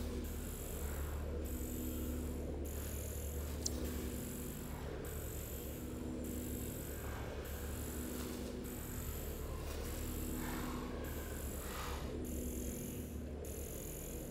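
An electronic scanner hums with a steady pulsing drone.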